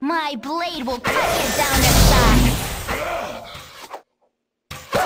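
A magic spell bursts with a loud, roaring whoosh.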